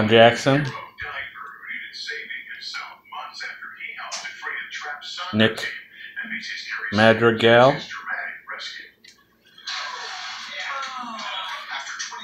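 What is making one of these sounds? Cards rustle and tap softly as a hand stacks them.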